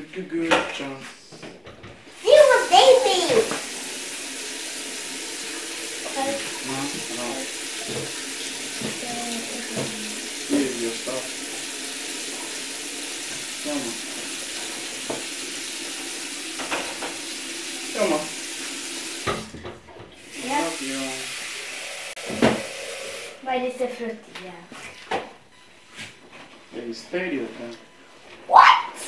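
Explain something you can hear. A young child babbles and talks nearby.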